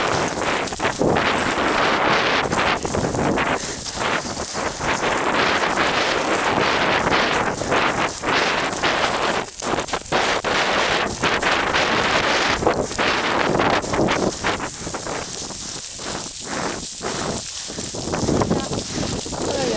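Footsteps crunch and slide quickly down loose gravel.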